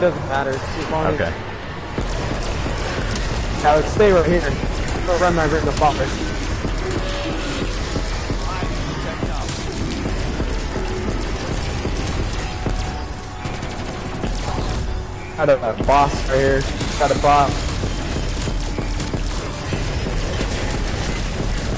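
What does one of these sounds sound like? An energy weapon zaps and crackles in rapid bursts.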